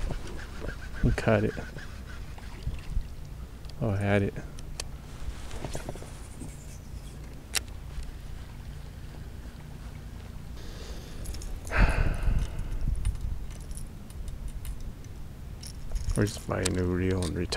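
A man speaks calmly close by, in short bursts.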